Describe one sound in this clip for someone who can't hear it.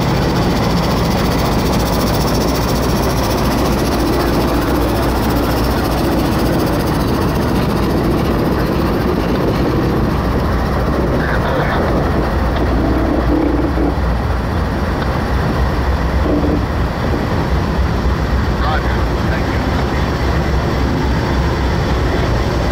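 Steel wheels clatter and squeal on the rails as a train rolls past.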